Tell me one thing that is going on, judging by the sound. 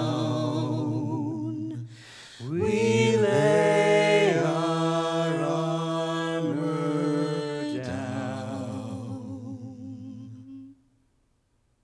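A small group of men and women sings together.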